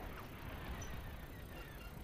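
Laser blasts zap past in quick bursts.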